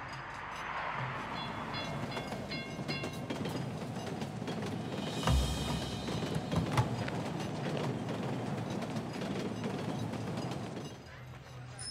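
A train rumbles past overhead.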